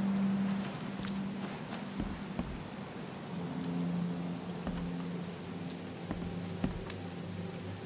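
Footsteps tread over grass and wooden boards.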